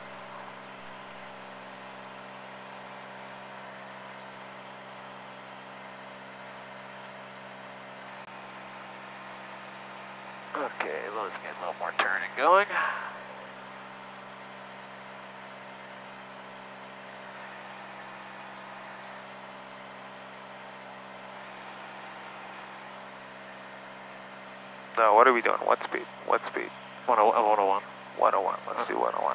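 A light aircraft engine drones steadily inside the cabin.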